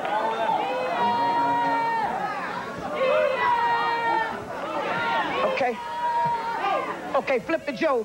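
A woman sings with feeling into a microphone.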